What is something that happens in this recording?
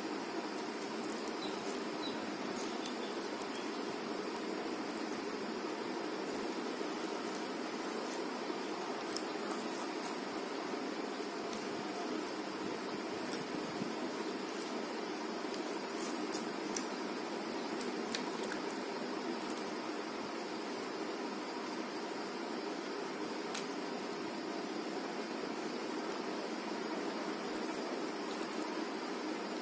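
Fingers squish and mix soft rice and fish on a plate, close to a microphone.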